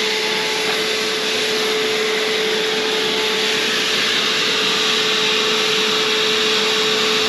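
A spray gun hisses steadily up close.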